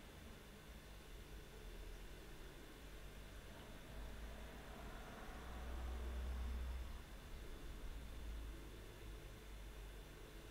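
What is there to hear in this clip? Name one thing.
A young woman breathes slowly and deeply nearby.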